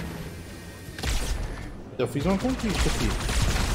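An energy blast explodes with a crackling buzz.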